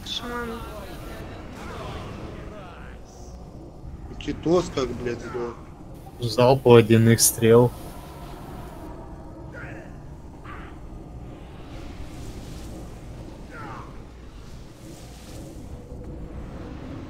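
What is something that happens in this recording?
Magic spells whoosh and crackle in a busy fantasy battle.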